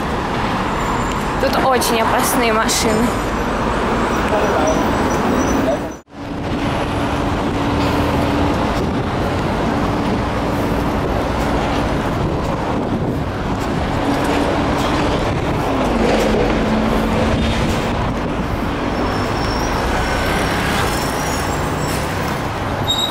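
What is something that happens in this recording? Traffic hums steadily along a busy street outdoors.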